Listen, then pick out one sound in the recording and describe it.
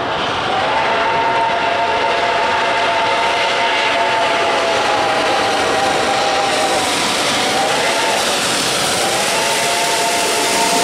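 A steam locomotive chugs and puffs as it approaches.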